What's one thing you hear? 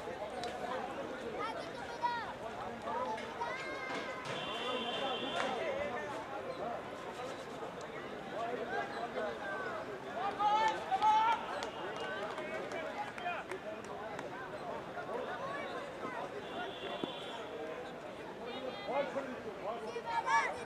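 A crowd of men talk and call out outdoors.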